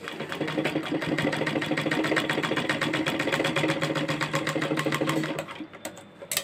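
A sewing machine runs fast with a rapid, steady clatter.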